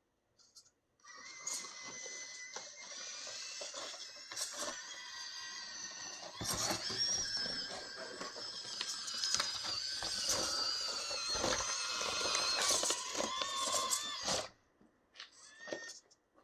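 Plastic wheels knock and scrape against rock.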